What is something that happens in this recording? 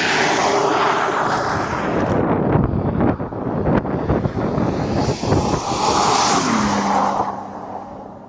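A car engine roars as the car speeds away across the ice.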